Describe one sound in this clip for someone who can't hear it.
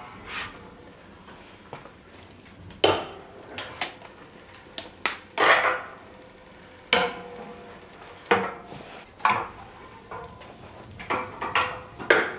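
Burning logs crackle in a stove.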